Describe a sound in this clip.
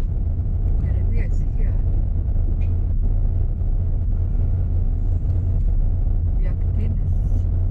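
Tyres crunch over a gravel road.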